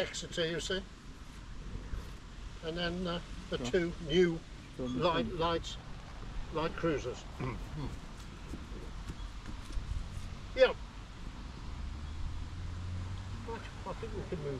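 An elderly man speaks calmly outdoors to a small group.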